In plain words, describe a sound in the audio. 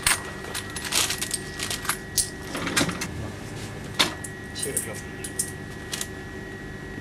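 Coins clink and rattle in a cash drawer.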